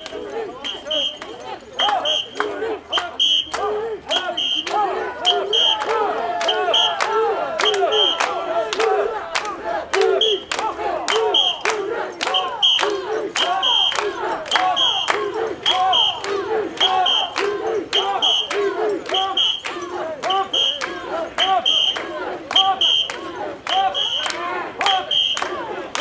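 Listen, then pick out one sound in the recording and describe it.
A crowd of men chants loudly in rhythm nearby, outdoors.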